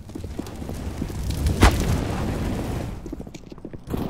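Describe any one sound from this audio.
Fire roars and crackles from a burning grenade.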